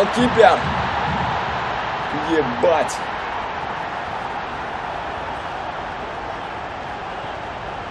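A large stadium crowd roars and slowly quietens.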